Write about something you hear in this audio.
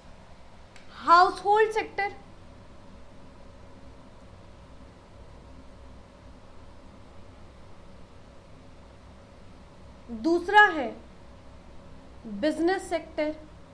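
A woman speaks calmly in short phrases, close by.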